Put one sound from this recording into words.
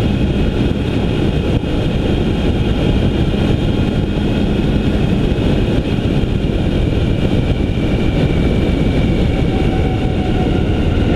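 Wind rumbles loudly against a moving vehicle.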